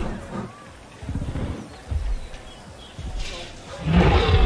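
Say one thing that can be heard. A large dinosaur growls deeply.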